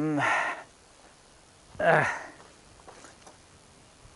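Footsteps crunch through dry grass and loose soil.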